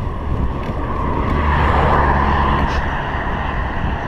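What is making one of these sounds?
A car passes by in the opposite direction.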